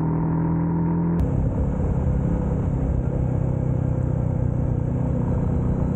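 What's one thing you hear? A motorcycle engine hums while cruising along a road.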